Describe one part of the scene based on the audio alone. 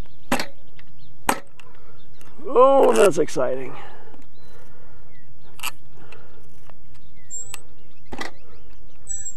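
Metal parts click and tap as hands turn a small screw.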